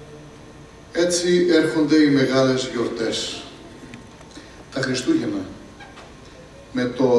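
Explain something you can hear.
A man speaks into a microphone over loudspeakers in a reverberant hall.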